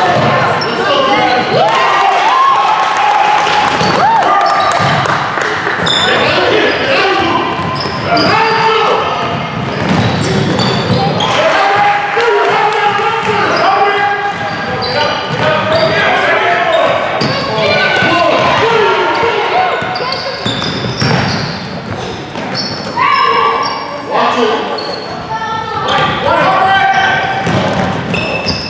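Sneakers squeak on a hard gym floor.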